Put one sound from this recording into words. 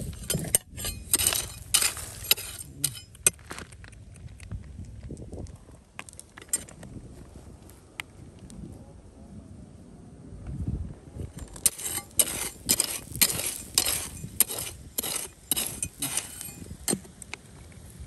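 A tool scrapes and rattles through loose gravel.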